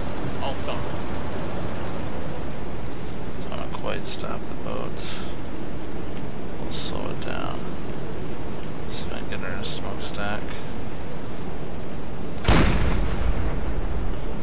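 Sea waves wash and splash steadily against a ship's hull.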